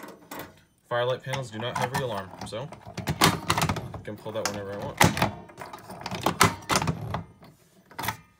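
A key rattles and clicks as it turns in a lock.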